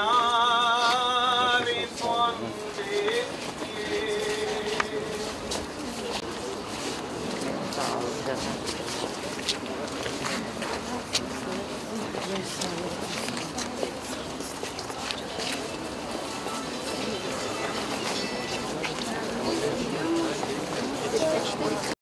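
A large crowd murmurs and talks quietly.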